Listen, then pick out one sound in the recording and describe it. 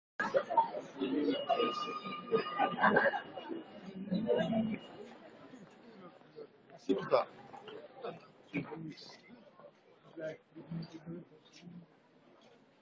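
A crowd of men and women chatters nearby.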